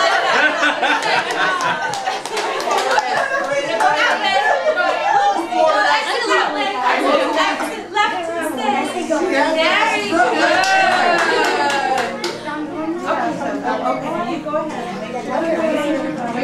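Adult women talk and chatter nearby.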